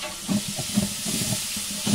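A wooden spoon scrapes against a metal pot.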